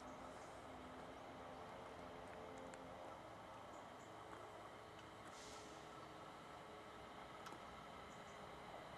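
An electric train approaches with a steady low rumble and hum.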